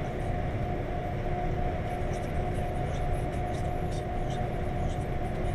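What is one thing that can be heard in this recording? A vehicle's engine drones steadily while driving along a highway.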